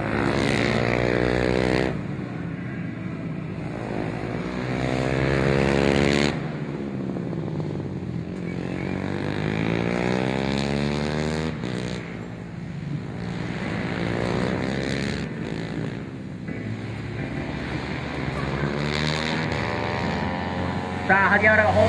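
A motorcycle engine roars loudly, revving up and down through the gears as the bike speeds past.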